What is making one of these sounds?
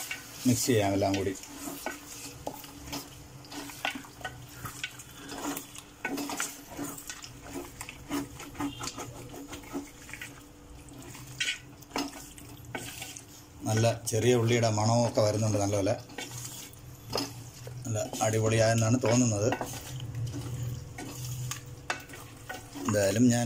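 A thick stew bubbles and sizzles in a pot.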